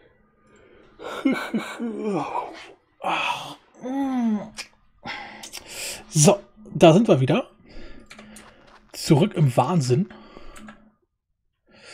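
A man talks animatedly and close into a microphone.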